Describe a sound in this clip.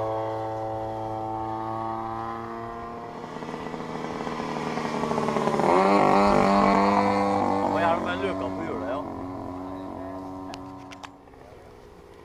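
A small model plane engine whines loudly, rising and falling in pitch.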